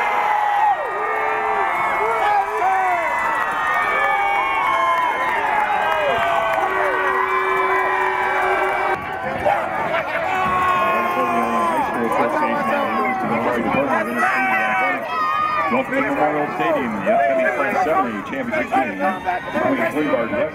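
A crowd of young men cheers and shouts excitedly close by.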